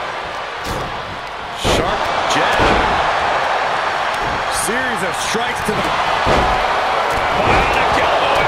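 A large crowd roars and cheers loudly.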